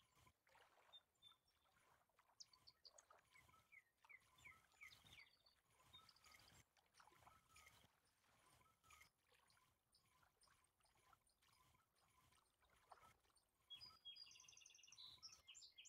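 A fishing reel clicks steadily as it winds in.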